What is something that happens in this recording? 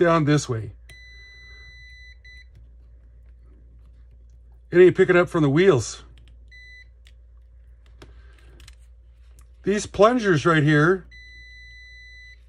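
A multimeter gives a steady high beep.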